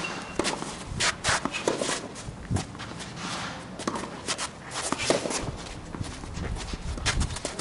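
Sneakers scuff and squeak on the court.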